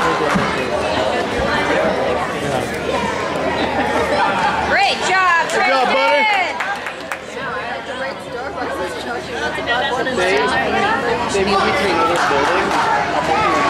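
Men and boys chatter in a large echoing hall.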